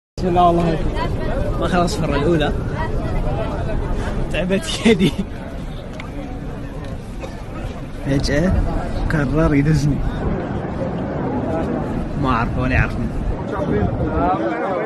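A young man speaks excitedly and laughs close to a microphone.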